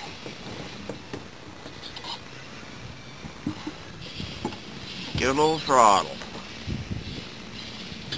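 Reeds brush and scrape against the side of a boat.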